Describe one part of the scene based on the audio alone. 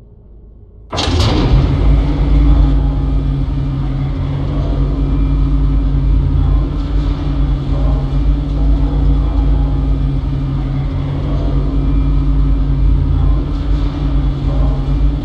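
A heavy machine rumbles and hums steadily.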